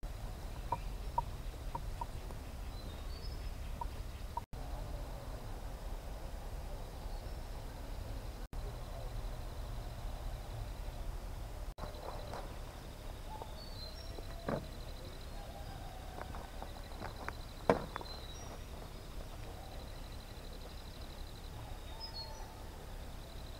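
Hands dig in dry soil and snap roots, with crunching and rustling.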